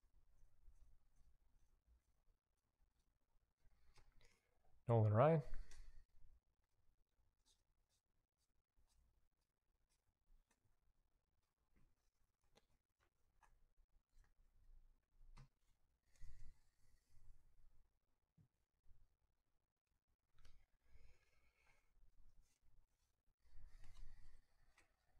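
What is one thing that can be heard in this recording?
Trading cards shuffle and flick softly between hands.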